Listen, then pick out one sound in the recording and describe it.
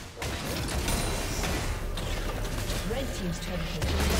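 A tower crumbles with a loud crash.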